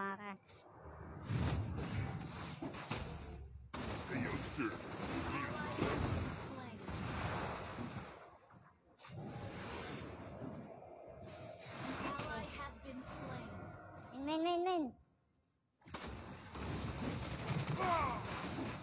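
Game battle sounds of blasts and clashing weapons play.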